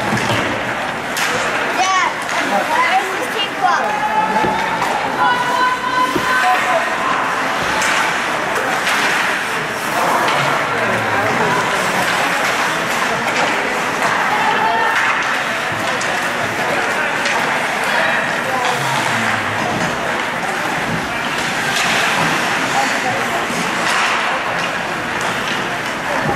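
Ice skates scrape and carve across ice in an echoing rink.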